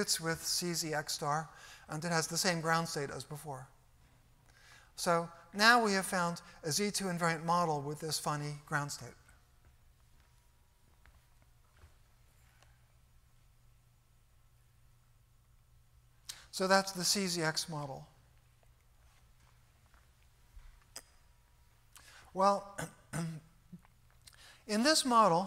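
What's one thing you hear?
An elderly man lectures calmly through a microphone, with pauses.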